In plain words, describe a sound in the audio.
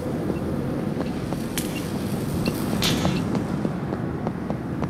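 Quick footsteps slap on a hard pavement.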